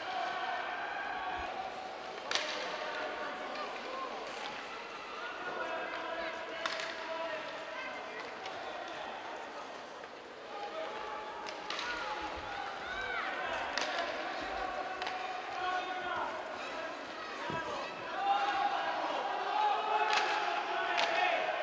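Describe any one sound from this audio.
Skates scrape across ice.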